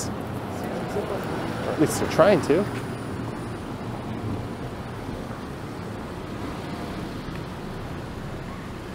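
Traffic hums steadily along a city street outdoors.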